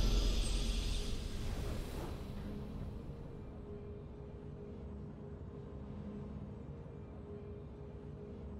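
A triumphant game fanfare swells and then fades into a soft, steady drone.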